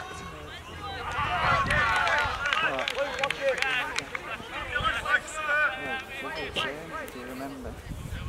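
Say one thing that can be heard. Spectators chatter and cheer from the sideline outdoors.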